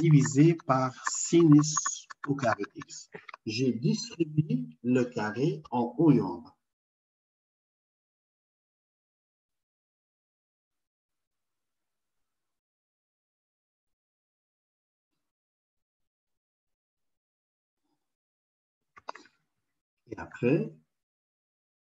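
A man speaks calmly through an online call.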